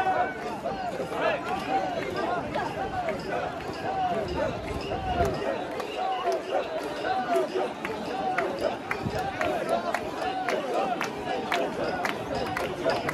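A crowd of men and women chant loudly together in rhythm, close by.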